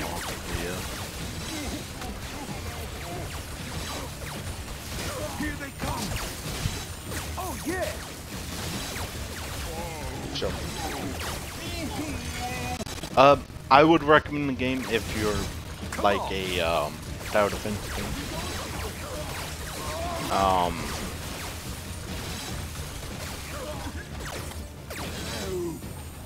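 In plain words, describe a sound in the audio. Electric zaps crackle and buzz from a game's traps.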